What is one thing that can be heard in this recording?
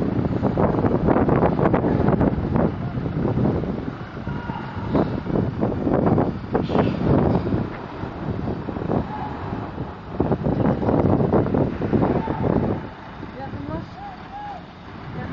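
A truck's diesel engine rumbles loudly nearby as it slowly manoeuvres.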